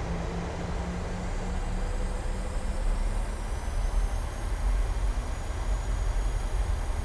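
Jet engines spool up with a rising whine.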